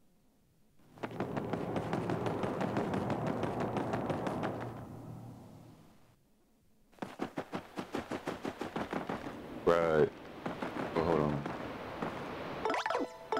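Quick footsteps patter.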